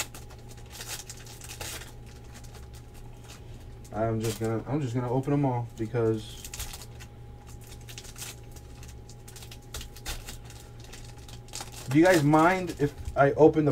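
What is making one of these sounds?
Foil card wrappers crinkle as they are torn open.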